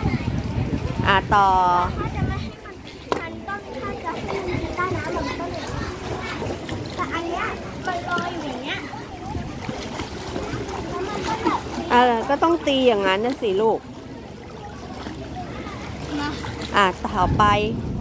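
A young girl speaks and calls out close by.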